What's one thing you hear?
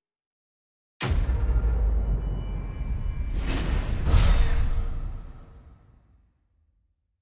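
A short triumphant musical fanfare plays and fades out.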